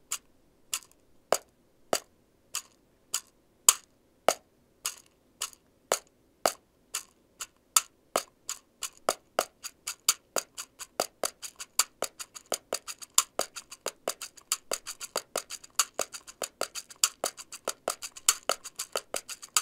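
A small wooden object clicks sharply in hand, in an even rhythm that gradually speeds up.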